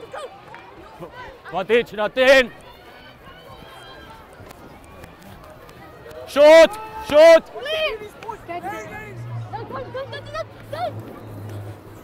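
Young boys shout and call out excitedly outdoors.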